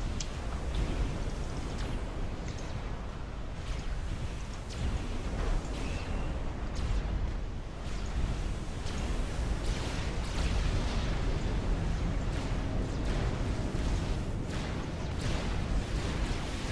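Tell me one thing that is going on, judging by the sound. Cannon shots boom and crack again and again.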